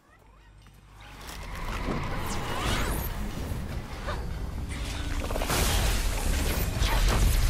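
Loud magic blasts and rumbling battle sounds build up and grow louder.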